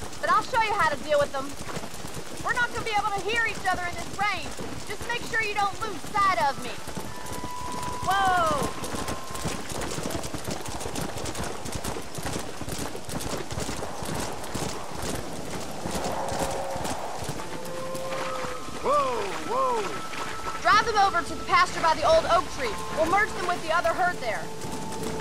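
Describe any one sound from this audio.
Horse hooves pound steadily on soft ground at a gallop.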